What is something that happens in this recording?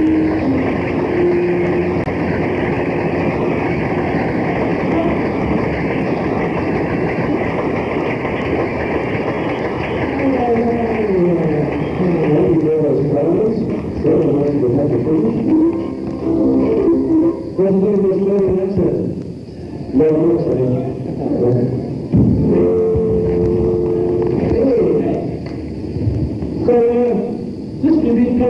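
A live rock band plays electric guitars loudly.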